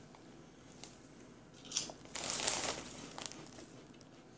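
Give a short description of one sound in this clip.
A crisp bag crinkles as it is handled.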